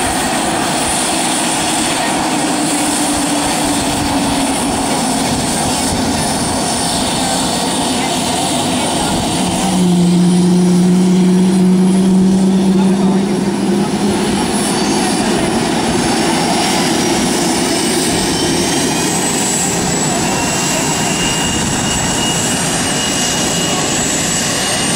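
A jet engine roars loudly nearby, with a steady high whine.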